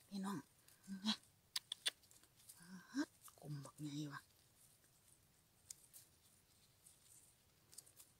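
A small knife cuts through a mushroom stem.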